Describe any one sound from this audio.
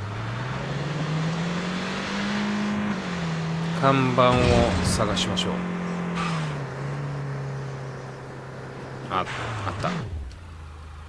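A car engine hums and revs while driving.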